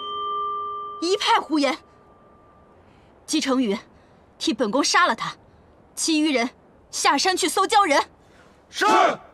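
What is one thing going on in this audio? A young woman speaks sharply and angrily.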